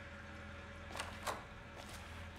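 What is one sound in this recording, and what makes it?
A door clicks open.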